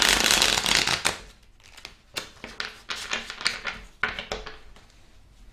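Paper crinkles and rustles close up as it is handled.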